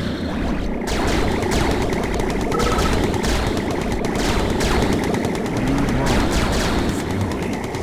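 Laser weapons zap in a video game battle.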